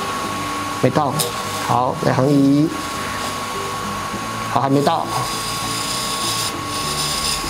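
A chisel scrapes against spinning wood.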